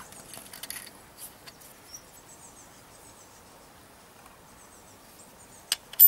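A coin scrapes and clicks faintly against stone.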